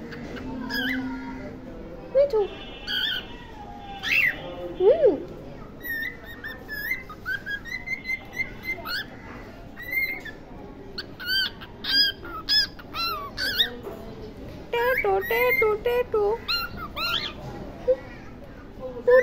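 A cockatiel chirps and whistles close by in a quick run of short calls.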